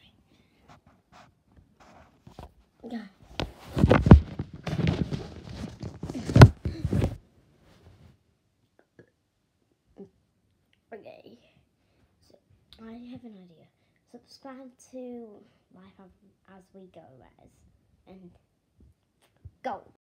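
A young girl talks close to the microphone.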